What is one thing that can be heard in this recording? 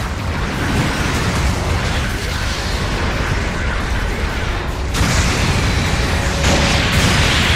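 Heavy mechanical footsteps thud and clank.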